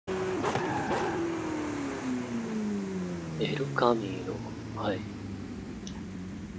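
A sports car engine winds down as the car slows.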